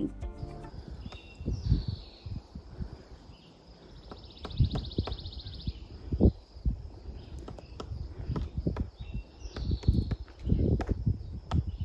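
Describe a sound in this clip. A woodpecker taps and drums on a tree trunk.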